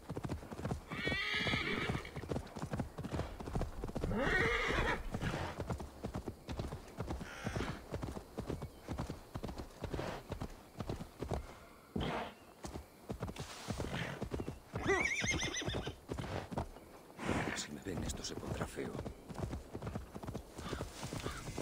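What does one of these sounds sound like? A horse's hooves thud steadily at a trot.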